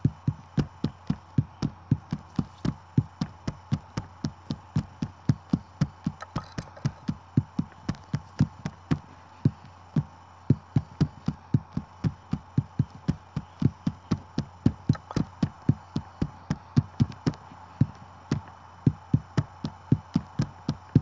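Rapid, punchy tap sounds from a rhythm game land in a quick, steady beat.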